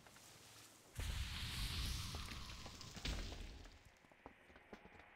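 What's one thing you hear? A magical spell hisses and crackles.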